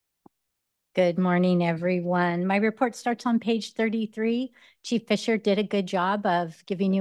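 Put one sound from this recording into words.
A middle-aged woman speaks calmly into a microphone.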